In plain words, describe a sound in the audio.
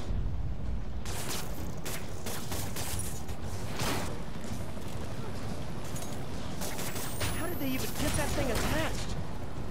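Electricity crackles and zaps in sharp bursts.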